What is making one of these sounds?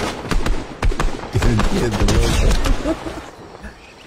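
Rifle shots crack one after another.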